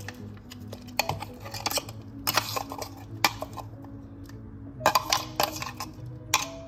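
A metal spoon scrapes and taps against a metal cup.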